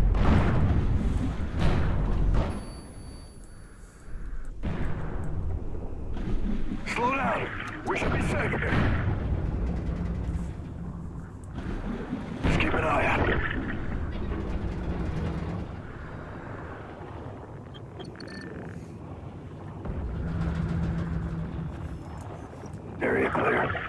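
Deep water rumbles and swirls, muffled and low.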